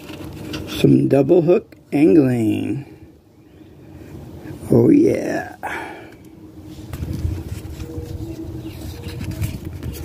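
Paper rustles as a sticker is handled and peeled.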